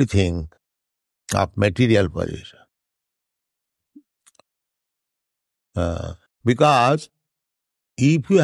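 An elderly man speaks slowly and calmly, in short phrases with pauses.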